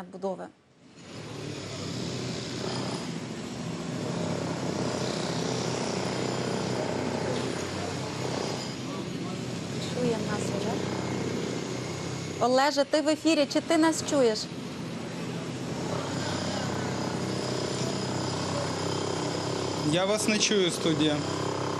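Street noise hums steadily in the background.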